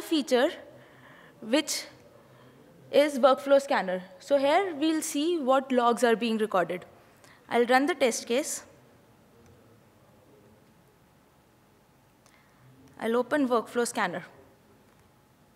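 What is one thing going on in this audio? A young woman speaks calmly into a microphone, heard through loudspeakers in a large room.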